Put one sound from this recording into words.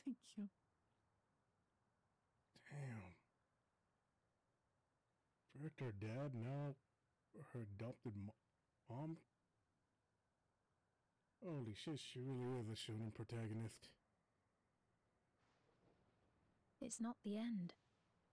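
A young man talks with animation into a microphone, in short bursts.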